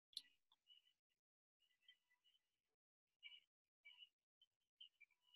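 A woman talks through an online call.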